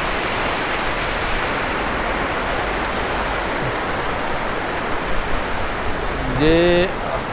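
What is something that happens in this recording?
A mountain stream rushes loudly over rocks.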